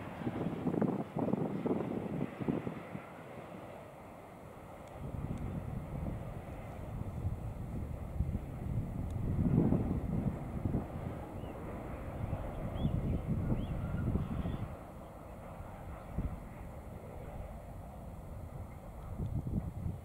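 A freight train rumbles along steadily in the distance.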